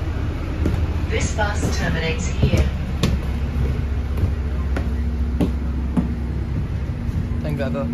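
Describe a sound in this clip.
Footsteps thud down metal stairs.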